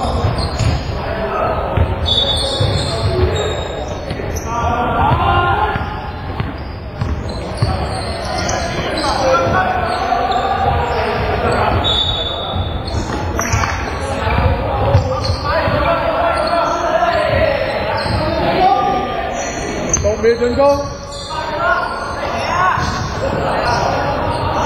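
Young men call out to each other across the court.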